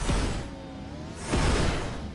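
A man talks with animation into a microphone.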